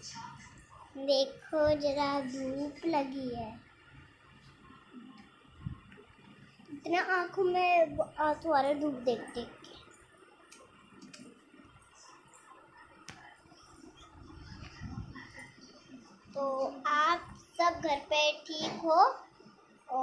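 A young girl sings close by, in a high voice.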